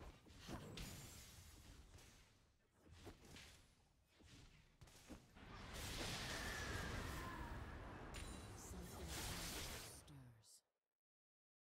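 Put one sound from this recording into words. Video game combat effects crackle and clash.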